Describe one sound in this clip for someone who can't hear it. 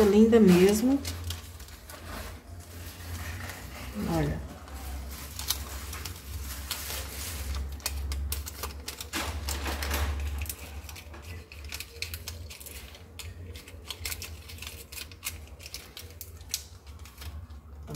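Paper crinkles and rustles as it is peeled and folded by hand.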